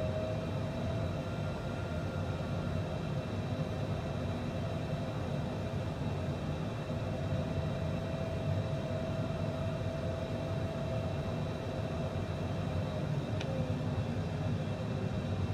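Jet engines hum steadily from inside a cockpit.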